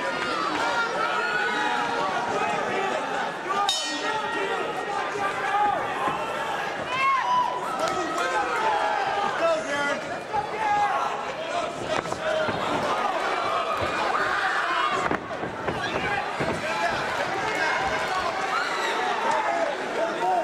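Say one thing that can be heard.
A crowd cheers and shouts loudly throughout in a large echoing arena.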